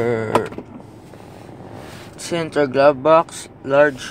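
A storage lid clicks open.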